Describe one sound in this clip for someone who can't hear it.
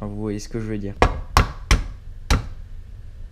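An egg knocks sharply against a hard edge several times.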